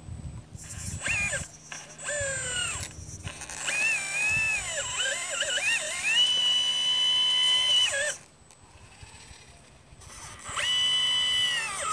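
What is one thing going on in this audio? A small electric motor whines in bursts, its pitch rising and falling.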